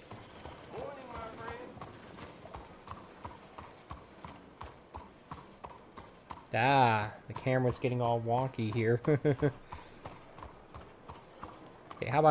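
A horse's hooves clop at a slow walk.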